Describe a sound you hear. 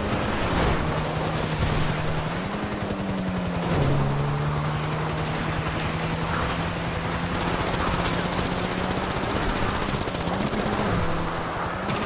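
A car engine drones steadily, rising and falling in pitch as it climbs.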